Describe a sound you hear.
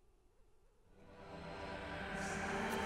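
A magical shimmering whoosh swells up loudly.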